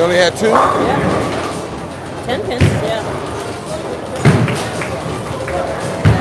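A bowling ball rolls down a lane.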